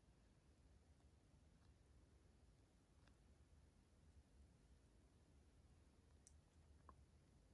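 A towel rustles softly as a baby monkey is held and stroked.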